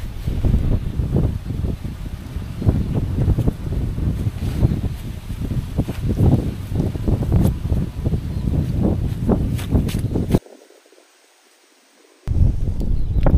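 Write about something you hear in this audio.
Wind gusts roughly against the microphone outdoors.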